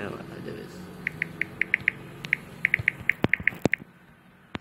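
Keyboard taps click rapidly.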